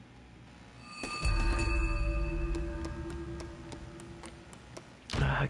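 A deep, booming musical tone swells and slowly fades.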